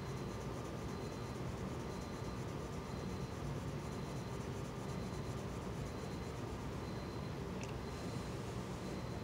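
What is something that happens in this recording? A colored pencil scratches softly across paper.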